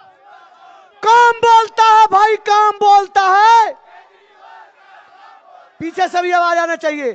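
A man shouts loudly through a loudspeaker.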